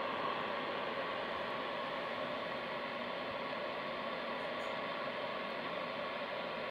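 A shortwave radio hisses and crackles with steady static through its loudspeaker.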